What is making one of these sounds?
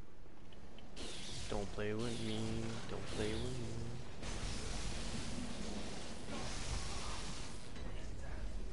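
An electric weapon crackles and hums.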